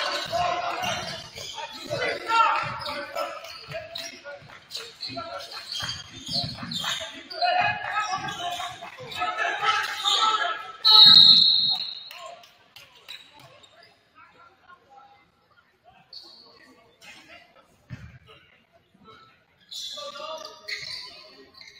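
Young men shout to each other in an echoing gym.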